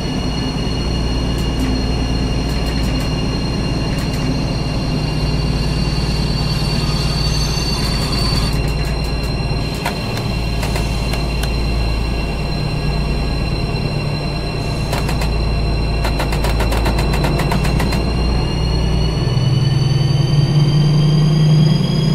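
A train engine rumbles steadily as the train slows to a stop.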